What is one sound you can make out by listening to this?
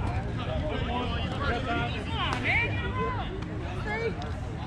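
Players cheer and shout after the hit.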